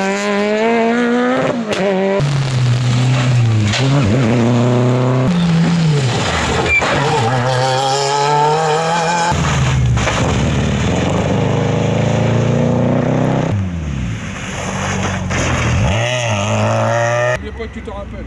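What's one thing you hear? Tyres hiss through water on a wet road.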